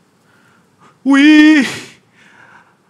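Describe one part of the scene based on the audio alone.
A young man shouts out loudly in a long, sustained cry.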